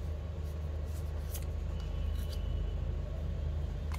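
A card taps down onto a table.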